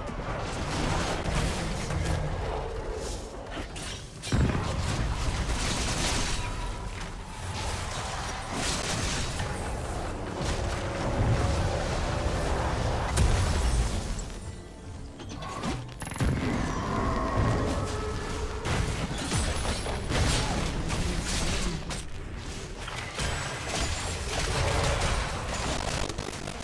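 Video game spell and combat sound effects clash and burst.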